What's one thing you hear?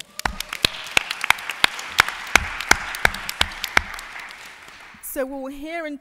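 An audience applauds, fading out.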